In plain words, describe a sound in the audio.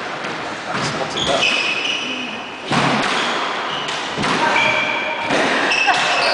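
Sneakers squeak sharply.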